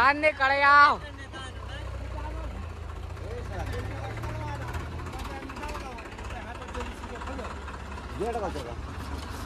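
A tractor engine idles with a steady low rumble.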